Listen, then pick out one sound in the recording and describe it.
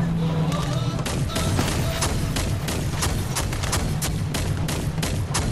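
A gun fires in rapid bursts of sharp shots.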